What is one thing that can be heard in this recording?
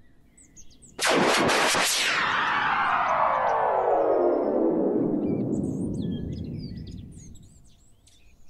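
A loud descending whistle slides slowly down in pitch as an object falls.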